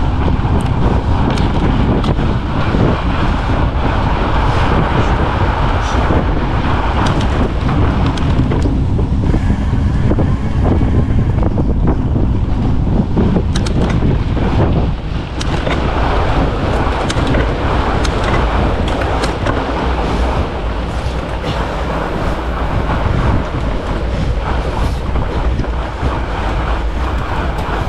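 Fat bicycle tyres crunch over packed snow.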